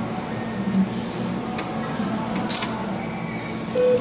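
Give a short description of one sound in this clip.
A cash machine whirs as it pushes out banknotes.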